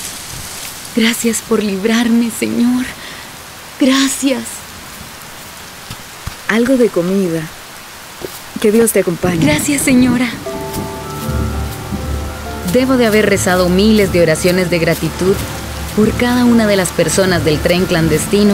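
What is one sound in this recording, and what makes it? A young woman sings with feeling.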